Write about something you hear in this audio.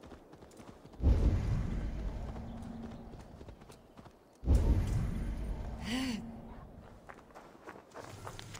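A deep magical whoosh booms and slowly fades.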